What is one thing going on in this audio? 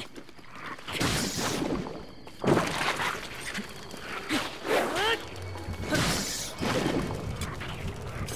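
Loud explosions boom.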